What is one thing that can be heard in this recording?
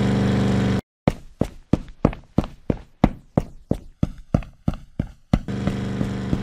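Quick footsteps patter in a fast rhythm.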